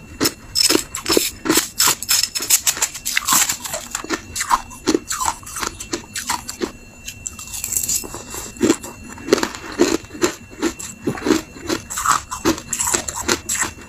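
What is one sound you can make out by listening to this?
A metal spoon scrapes and clinks against ice.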